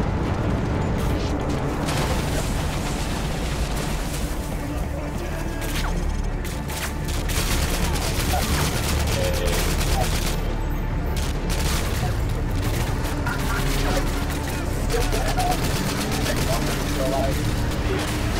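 Rapid gunfire rattles in bursts.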